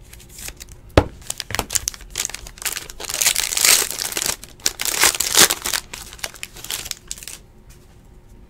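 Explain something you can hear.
A foil wrapper crinkles and tears close by.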